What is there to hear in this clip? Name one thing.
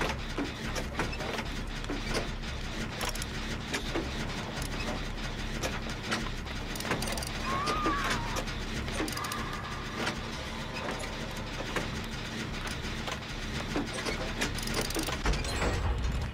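A machine rattles and clanks as it is worked on by hand.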